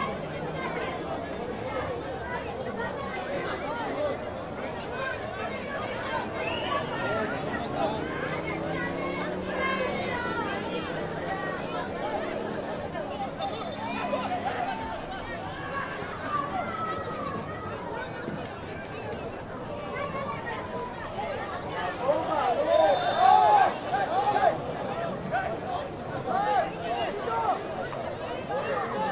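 Players shout to each other across an open pitch.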